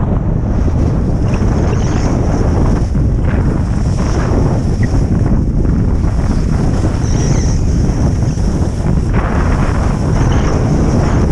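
Wind rushes loudly past a moving skier.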